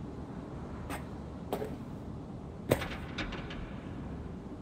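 Footsteps thud on a hard surface.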